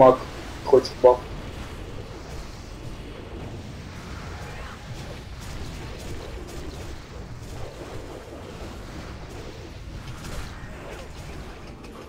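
Magic spells crackle and whoosh in a video game battle.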